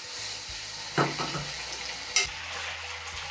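A plate knocks onto a wooden table.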